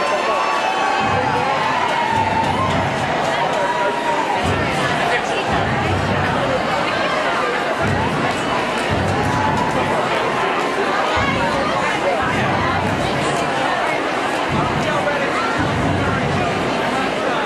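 A large outdoor crowd chants loudly in a steady rhythm.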